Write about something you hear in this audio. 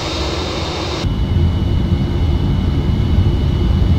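A deep engine rumble fills an aircraft cockpit.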